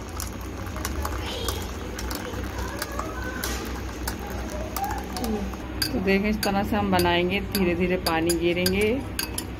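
A spoon clinks against a glass while stirring a drink.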